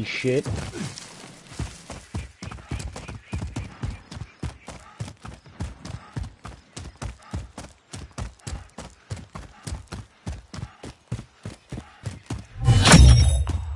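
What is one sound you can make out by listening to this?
Footsteps thud quickly and evenly over the ground.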